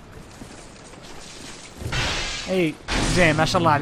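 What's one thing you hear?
A sword slashes and strikes with a heavy thud.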